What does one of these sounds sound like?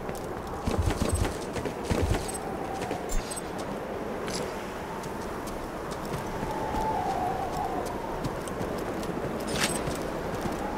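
Wind howls steadily.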